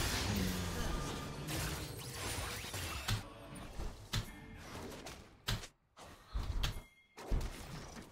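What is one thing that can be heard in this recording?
Game sound effects of spells and hits play.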